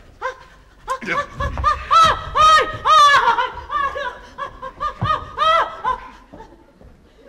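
A woman cries out loudly and shrilly.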